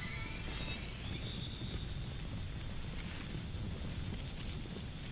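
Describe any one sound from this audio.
A character dashes along with a rushing, whooshing game sound.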